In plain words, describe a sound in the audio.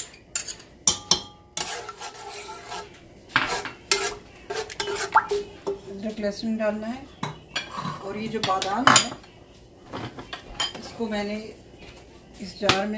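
Onions sizzle softly in hot oil.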